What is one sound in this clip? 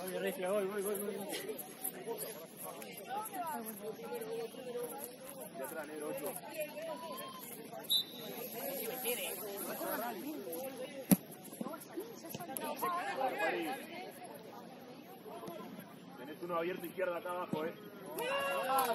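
Young women talk and call out to each other outdoors.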